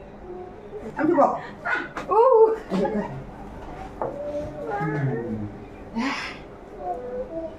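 Children talk and laugh nearby.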